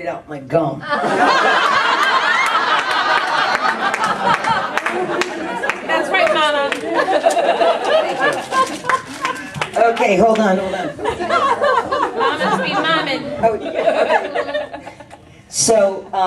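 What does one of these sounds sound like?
Several women laugh nearby.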